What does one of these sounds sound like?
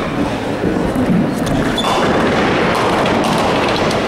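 A bowling ball rumbles down a lane.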